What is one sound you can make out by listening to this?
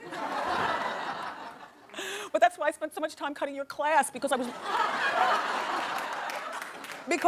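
A studio audience laughs and cheers.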